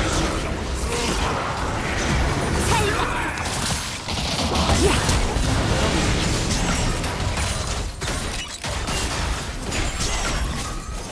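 Magic blasts and weapon hits crackle and whoosh in a fast fight.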